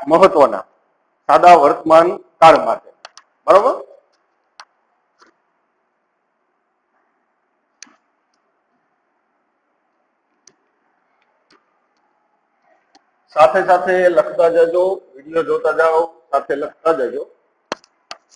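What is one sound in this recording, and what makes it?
A man speaks clearly and steadily, close by, in short bursts.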